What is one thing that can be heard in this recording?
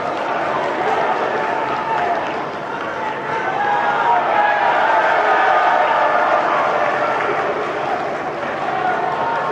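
A crowd of young men shouts and cheers in a large echoing hall.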